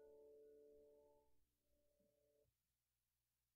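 A choir sings a held chord, then falls silent.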